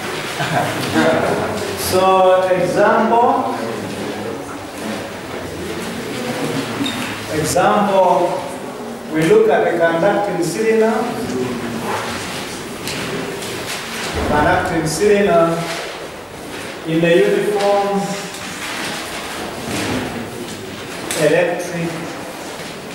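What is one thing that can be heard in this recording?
A man speaks calmly, explaining, in a room with some echo.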